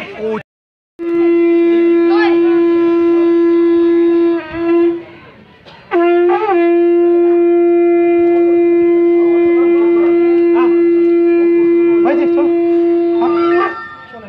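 A man blows a long, steady note on a horn, pausing briefly for breath.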